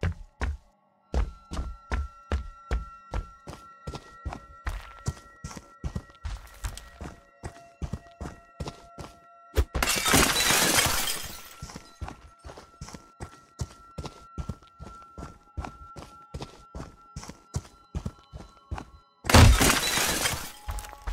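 Heavy footsteps thud at a steady walking pace.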